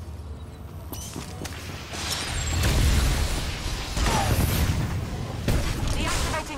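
Blasters fire with sharp zaps.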